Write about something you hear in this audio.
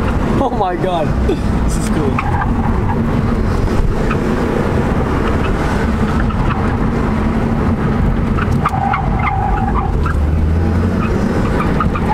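A car engine hums steadily with road noise while driving.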